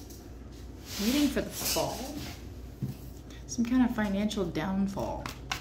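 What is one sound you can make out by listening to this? A woman speaks quietly and thoughtfully close by.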